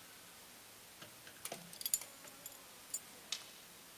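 Small objects clink and knock softly on a hard surface.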